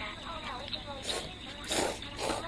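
A young man slurps noodles.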